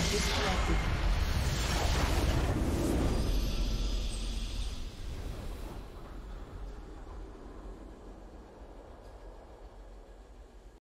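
A triumphant victory fanfare swells and fades.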